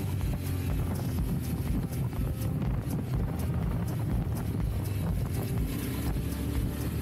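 Loose parts on the motorcycle rattle and knock over bumps.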